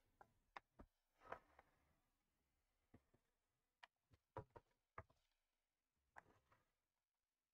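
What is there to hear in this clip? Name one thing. Small clicks and taps come from handling a plastic model.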